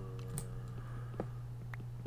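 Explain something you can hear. A pickaxe chips and cracks stone.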